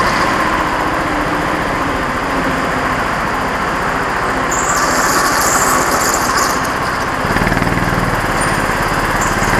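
A go-kart engine buzzes loudly close by, its pitch rising and falling.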